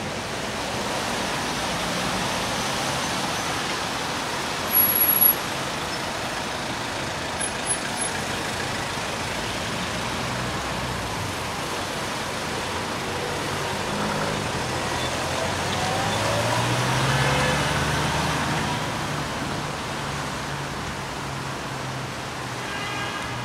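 Tyres hiss past on a wet road outdoors.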